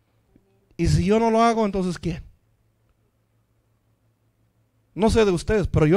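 A man speaks with emphasis into a microphone, heard through loudspeakers.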